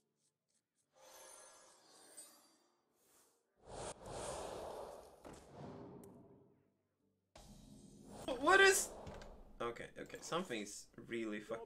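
Game sound effects whoosh and chime as cards are played.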